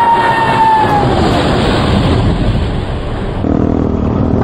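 A jet plane roars past low overhead, its whine dropping in pitch as it goes.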